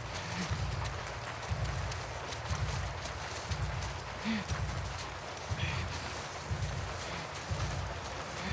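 Tall grass rustles as someone creeps through it.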